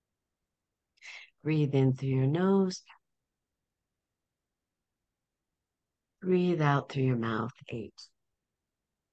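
A woman speaks calmly and slowly over an online call, pausing between phrases.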